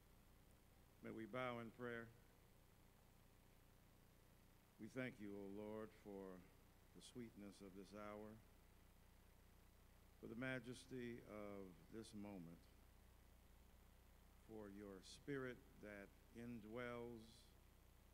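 A middle-aged man speaks slowly and solemnly into a microphone over loudspeakers, with pauses between phrases.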